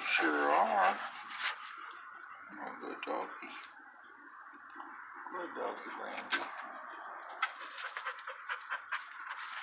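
A dog laps water from a bucket.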